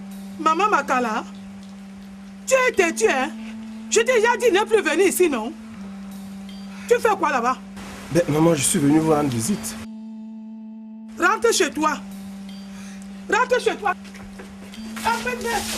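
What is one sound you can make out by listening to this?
A middle-aged woman shouts angrily.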